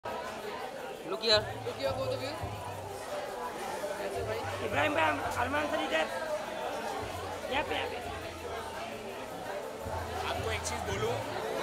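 Several men call out and chatter nearby outdoors.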